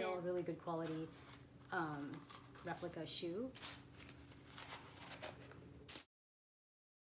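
Tissue paper rustles.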